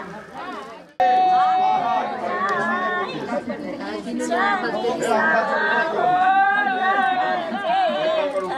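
Women sing together in a group, close by.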